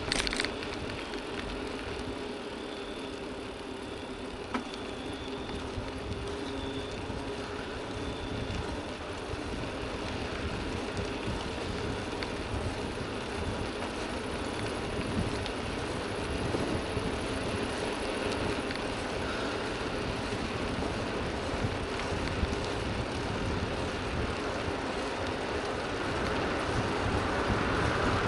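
Bicycle tyres hum and rattle on the pavement.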